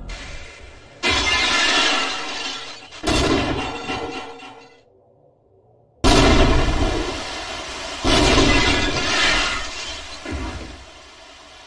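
A crowbar bangs against a metal vending machine.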